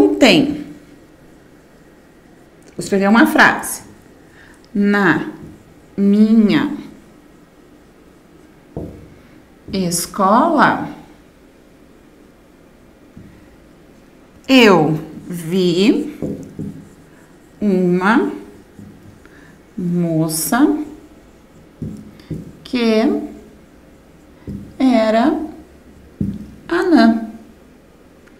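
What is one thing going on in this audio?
A woman speaks calmly in short phrases nearby, with pauses between them.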